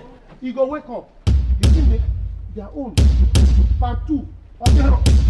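A man speaks excitedly nearby.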